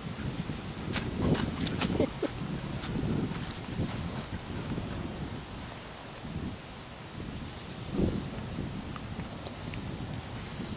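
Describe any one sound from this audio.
A dog paws and scratches at something in the grass.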